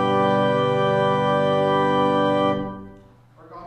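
An organ holds a loud chord and stops.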